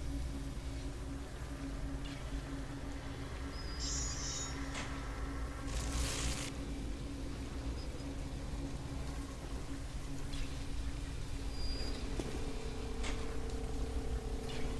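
Electricity crackles and buzzes steadily close by.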